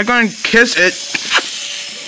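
A toy train rattles along a small track.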